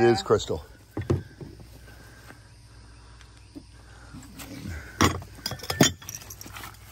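Glass dishes clink together.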